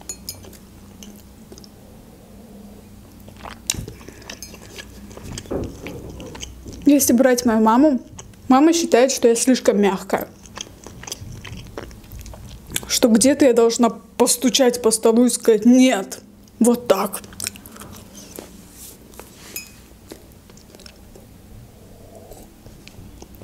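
A young woman sips a drink from a cup.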